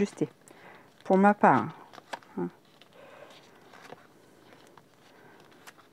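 Paper rustles and crinkles softly as it is folded by hand.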